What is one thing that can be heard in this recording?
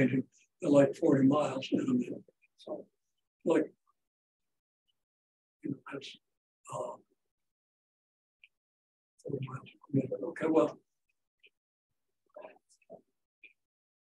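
An elderly man speaks calmly in bursts with pauses, close by.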